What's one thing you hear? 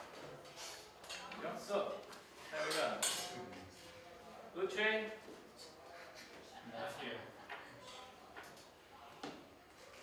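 A man lectures at a distance in a room with some echo.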